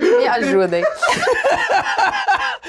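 Several young men laugh loudly together.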